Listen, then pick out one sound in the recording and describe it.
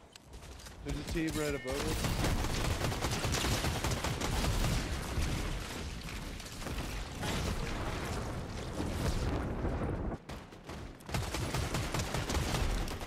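A rapid burst of gunfire rattles.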